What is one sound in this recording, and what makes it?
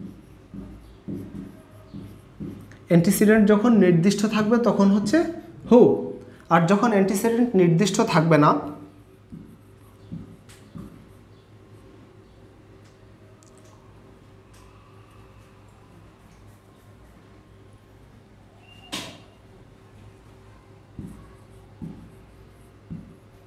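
A marker squeaks and taps on a glass board.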